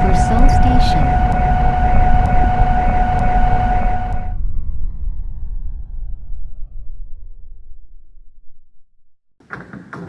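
A train rumbles along the rails, its whine falling in pitch as it slows to a stop.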